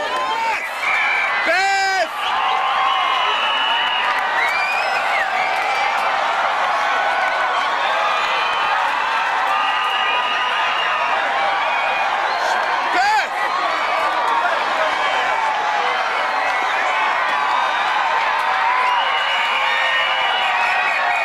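A large outdoor crowd chatters and shouts all around.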